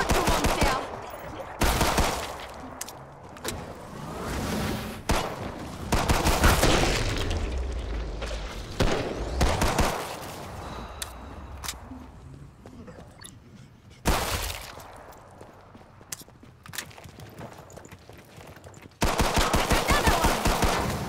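Pistol shots crack in quick bursts.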